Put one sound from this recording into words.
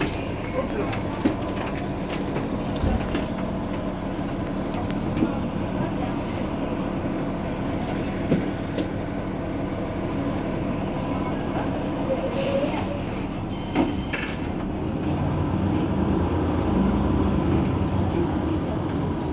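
A bus engine idles nearby with a steady low hum.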